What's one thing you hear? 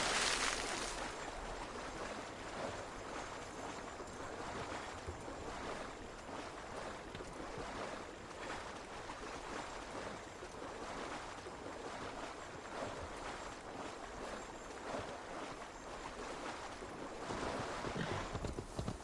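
A horse wades and splashes through water.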